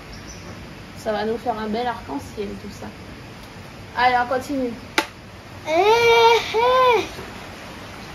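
A young boy reads syllables aloud nearby.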